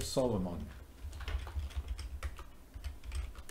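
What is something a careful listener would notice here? Keys clack on a keyboard in quick bursts.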